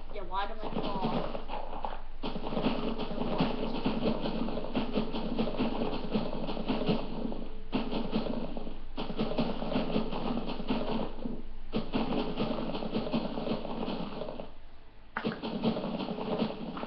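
Video game digging crunches scrape steadily from a small tablet speaker.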